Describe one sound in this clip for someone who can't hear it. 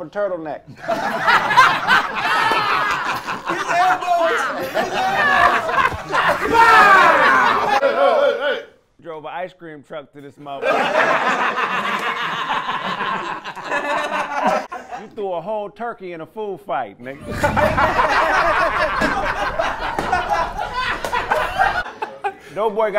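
A group of men laugh and cheer loudly.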